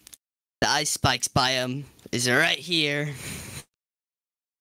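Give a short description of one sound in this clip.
A man speaks with animation, close to a microphone.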